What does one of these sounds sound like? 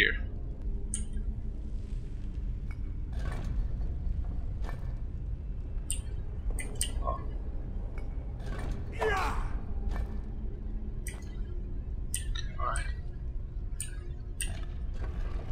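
Stone rings turn and lock with sharp clicks.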